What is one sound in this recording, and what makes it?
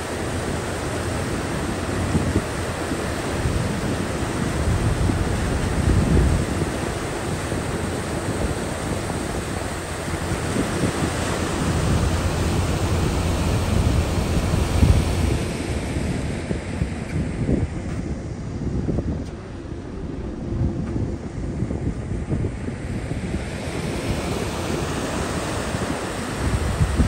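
Wind gusts and rumbles against the microphone outdoors.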